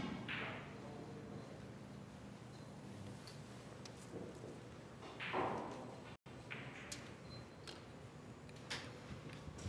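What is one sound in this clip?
Snooker balls click against each other and knock off the cushions.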